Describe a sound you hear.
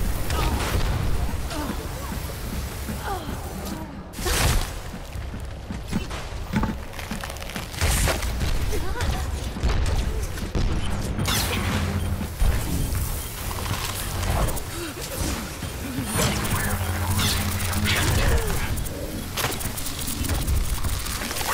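A game's frost gun sprays with a hissing rush.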